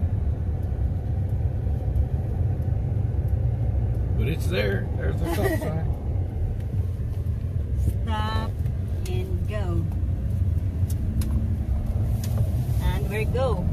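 A car engine hums steadily from inside the vehicle.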